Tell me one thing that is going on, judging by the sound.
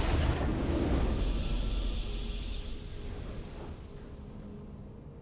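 A short victory fanfare plays and fades.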